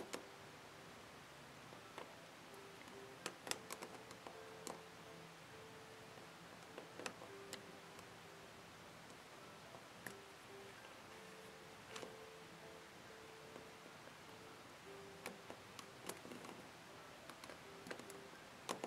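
A metal hook clicks and taps against a plastic loom.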